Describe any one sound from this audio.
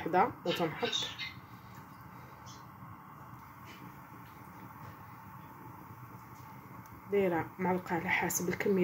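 A pot of soup simmers and bubbles gently.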